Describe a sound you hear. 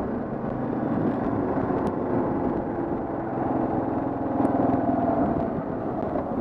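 A motorcycle engine hums steadily close by as it rides along.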